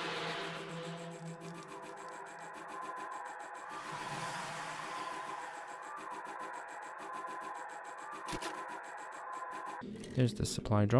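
A small motorbike engine hums steadily.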